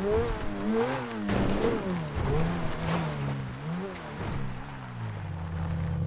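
Tyres crunch and skid over loose dirt.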